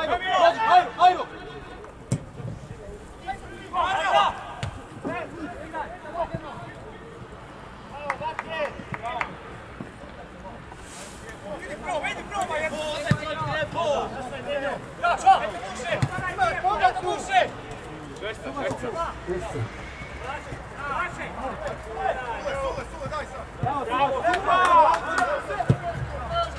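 Players shout to each other outdoors at a distance.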